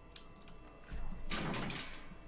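A metal door swings open with a loud rattle.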